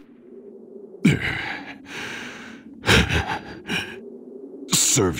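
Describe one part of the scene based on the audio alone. A man pants heavily.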